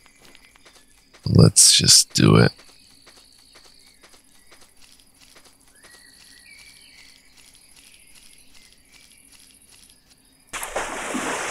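Light footsteps patter along a dirt path.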